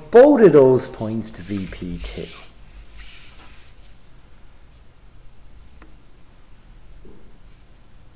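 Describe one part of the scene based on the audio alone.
A pencil scratches lightly across paper.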